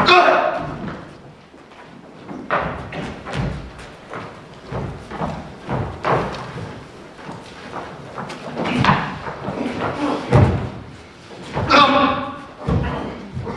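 Footsteps and scuffling thud on a wooden floor.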